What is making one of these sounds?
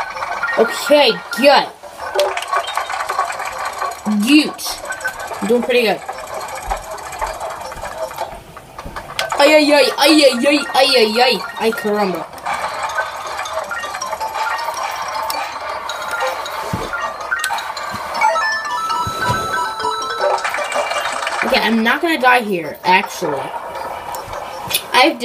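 Upbeat game music plays through a television speaker.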